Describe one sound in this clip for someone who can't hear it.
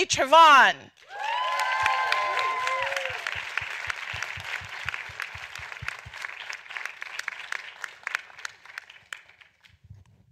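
An audience cheers and applauds.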